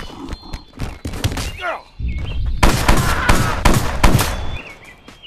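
Blows land with heavy, dull thuds.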